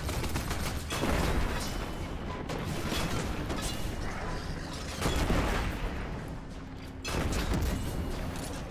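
Loud explosions boom and crackle.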